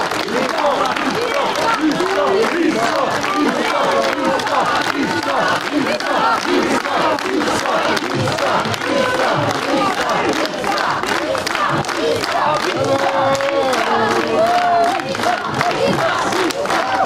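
Men and women call out and cheer close by.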